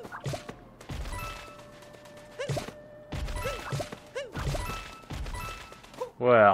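Spiky creatures burst apart with sharp crunching thuds.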